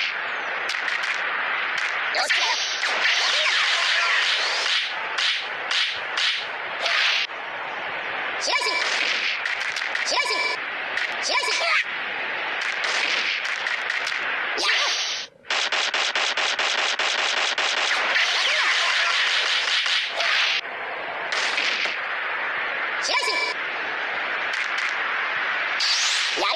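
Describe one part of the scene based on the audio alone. Hits land with sharp impact sounds in quick bursts.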